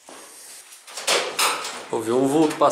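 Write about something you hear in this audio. A window slides open with a rattle.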